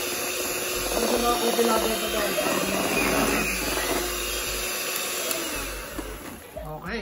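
An electric hand mixer whirs steadily, then stops.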